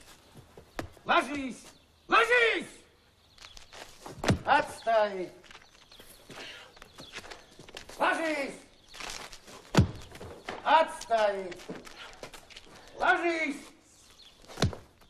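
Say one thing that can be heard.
A middle-aged man shouts loudly outdoors.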